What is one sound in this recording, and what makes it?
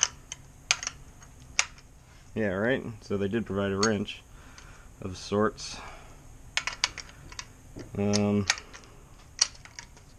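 Metal parts click and clink as they are handled close by.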